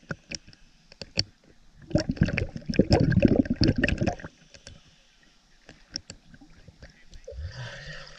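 Water splashes and laps close by as a swimmer strokes through it.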